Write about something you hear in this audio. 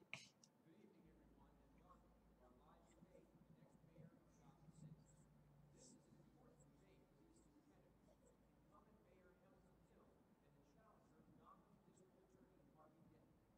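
A man announces calmly, as if over a broadcast.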